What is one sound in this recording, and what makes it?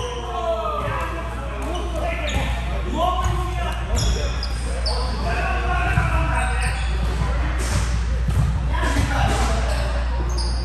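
A volleyball thumps off hands.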